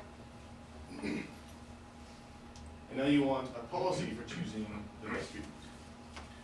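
A man speaks calmly to an audience.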